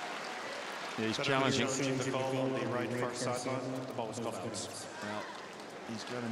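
A man announces calmly through a microphone and loudspeaker in a large arena.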